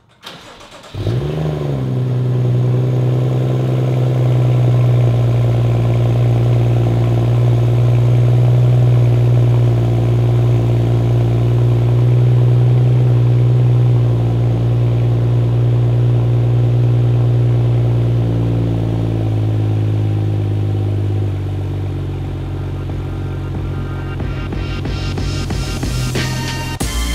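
A car engine starts up and idles with a deep, steady rumble.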